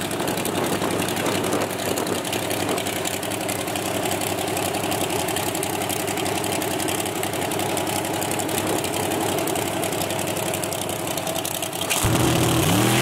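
A big engine idles loudly with a rough, lumpy rumble.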